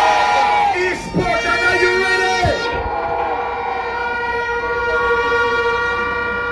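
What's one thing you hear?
A large outdoor crowd cheers and chants loudly.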